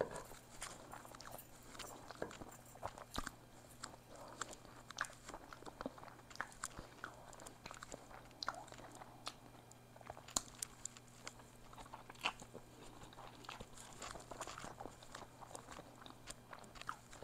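A woman chews and slurps noodles close to a microphone.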